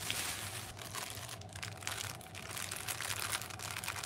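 Cardboard flaps and packages scrape and thump against each other.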